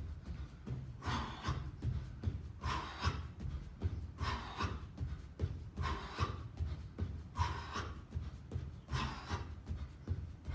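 A man exhales sharply in time with his jumps.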